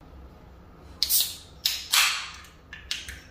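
A soda can snaps and hisses open.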